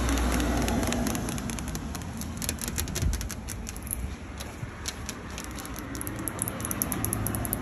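Long fingernails tap and scratch on a wet metal surface.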